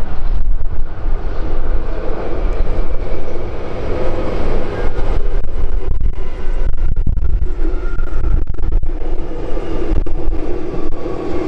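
A metro train rumbles along an elevated track.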